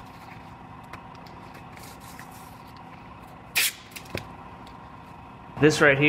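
Masking tape peels and tears off a surface.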